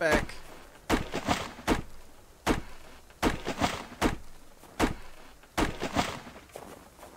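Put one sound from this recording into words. An axe chops into a tree trunk with sharp, repeated knocks.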